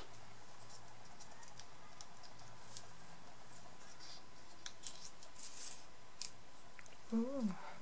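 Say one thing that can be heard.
A small strip of paper crinkles as fingers unroll it.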